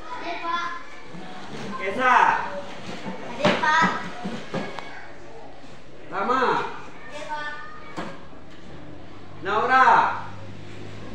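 Young girls talk and call out nearby in a room.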